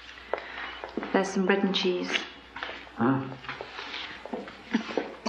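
A woman speaks tensely nearby.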